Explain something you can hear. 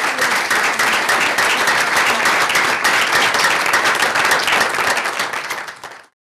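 A small crowd applauds steadily indoors, then the applause fades out.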